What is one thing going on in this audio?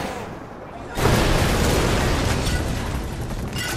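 A vehicle explodes with a heavy boom.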